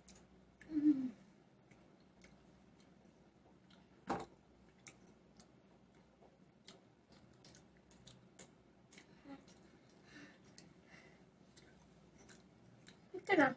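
Fingers squish and handle soft mango pieces.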